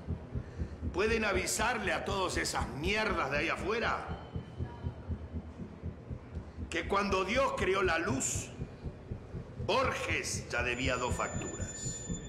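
An older man speaks forcefully and with animation, close by.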